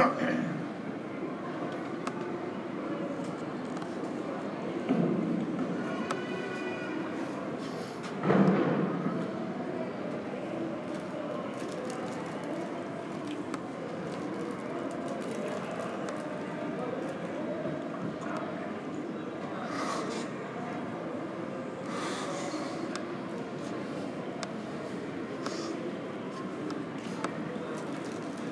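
A low, steady murmur fills a large echoing hall.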